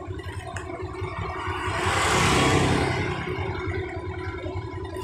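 A motorcycle passes by close, rising and fading.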